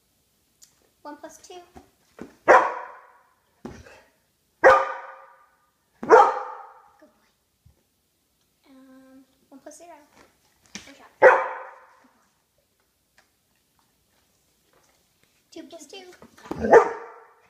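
A young woman speaks quietly to a dog, close by.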